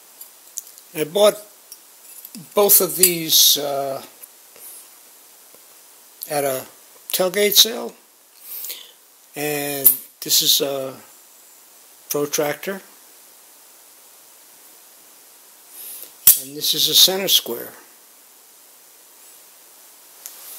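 Small metal pieces clink and tap lightly.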